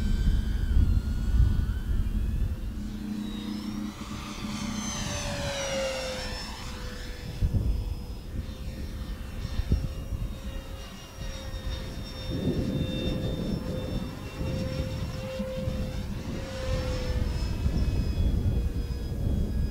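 An electric model plane's motor whines steadily overhead, rising and falling in pitch as it passes.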